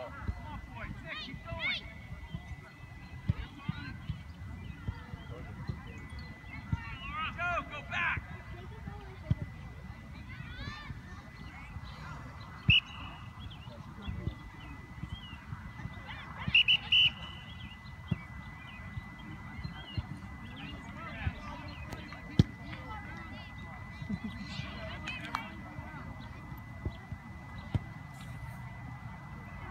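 Young players and adult spectators shout and call out across an open field.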